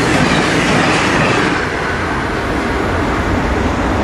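A freight locomotive rumbles as it approaches.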